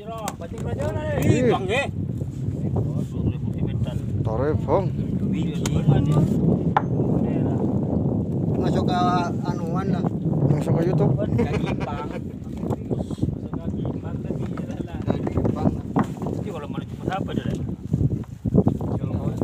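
Men talk and call out loudly close by, outdoors.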